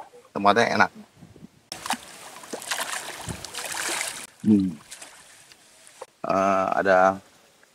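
An elderly man talks nearby.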